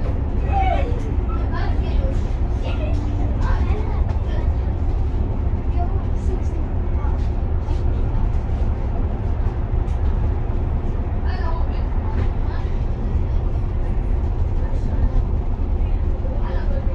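A vehicle's engine rumbles steadily.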